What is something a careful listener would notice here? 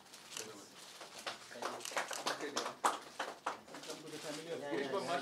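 A small crowd applauds.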